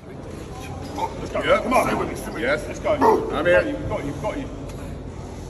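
A man shouts during a lift.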